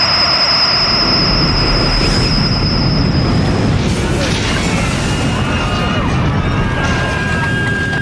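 A powerful energy blast roars and rumbles.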